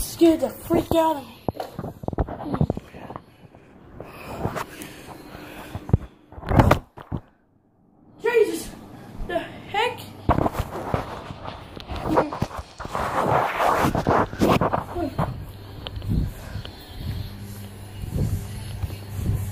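Fabric rustles and bumps against the microphone.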